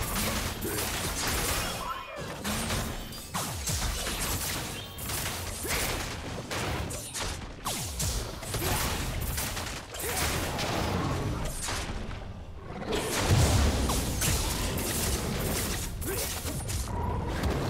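Spell effects crackle and zap in quick bursts during a fight.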